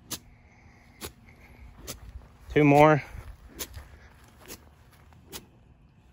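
A golf club swishes through long grass.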